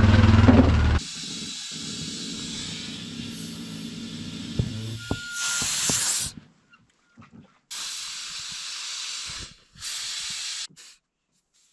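Air hisses steadily into a tyre in short bursts.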